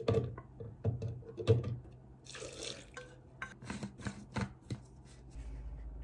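A spatula knocks and scrapes inside a blender jug.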